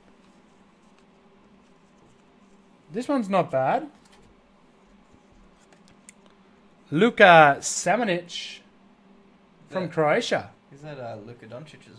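Trading cards rustle and slide in hands.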